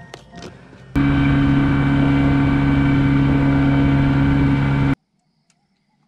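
A boat's outboard motor drones loudly and steadily.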